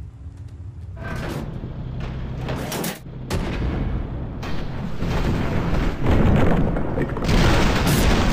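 A helicopter's rotor thuds steadily.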